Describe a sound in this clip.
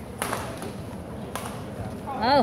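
A badminton racket strikes a shuttlecock with sharp pops.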